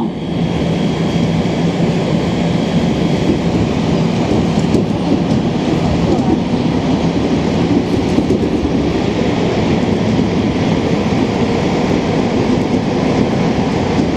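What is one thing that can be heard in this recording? A subway train rumbles loudly and steadily along the tracks.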